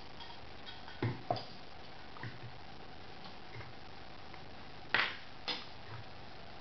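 A glass knocks on a wooden table.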